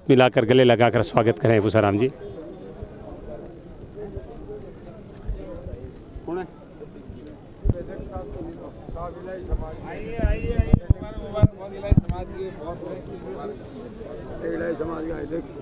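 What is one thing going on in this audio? A crowd of men chatters nearby outdoors.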